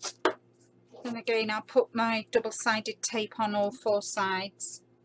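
Tape tears as it is pulled off a roll.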